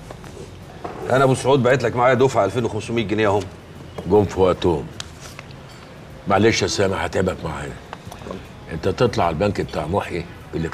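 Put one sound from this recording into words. A second older man answers calmly nearby.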